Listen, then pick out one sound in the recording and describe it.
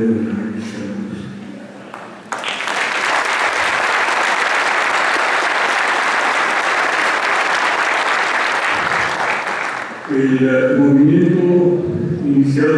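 An elderly man speaks into a microphone through loudspeakers in a large room.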